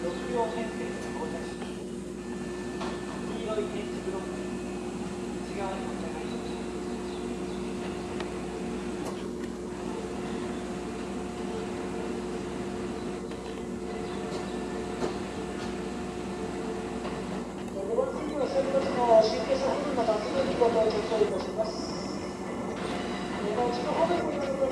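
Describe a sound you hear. An electric train hums steadily as it approaches.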